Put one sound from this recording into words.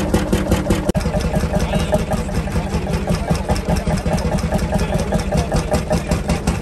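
A second old engine thumps rapidly close by.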